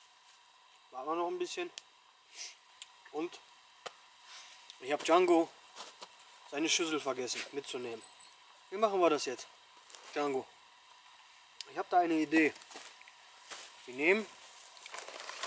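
A man speaks calmly nearby, outdoors.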